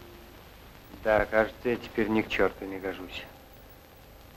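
A man speaks in a low, weary voice.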